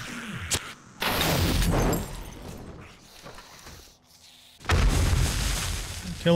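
Flames burst up and crackle.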